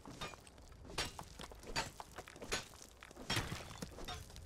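A pickaxe strikes rock with sharp clanks.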